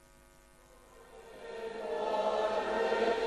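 An elderly man speaks slowly through a microphone, echoing in a large hall.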